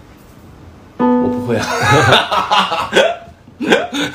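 Piano notes play briefly.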